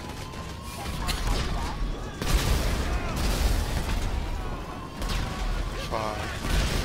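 Fire roars and crackles.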